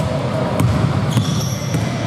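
A basketball bounces on a wooden court in a large echoing hall.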